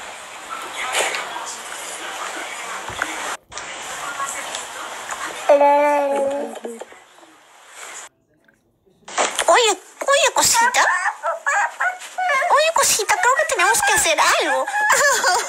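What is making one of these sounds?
A young child babbles and coos close by.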